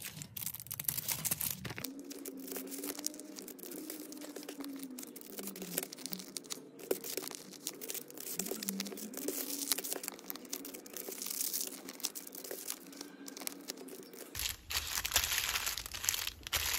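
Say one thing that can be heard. Plastic candy wrappers crinkle and rustle under fingers.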